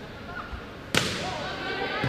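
A volleyball is served with a sharp smack in a large echoing gym.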